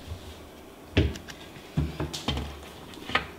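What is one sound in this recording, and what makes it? A cabinet door knocks and bumps as it is opened.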